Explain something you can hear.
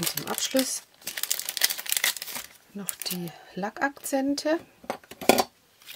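A plastic sheet rustles and crinkles as hands handle it.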